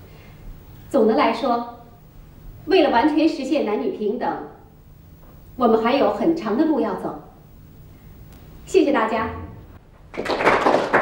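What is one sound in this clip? A woman speaks calmly and clearly, close by, in bursts with pauses.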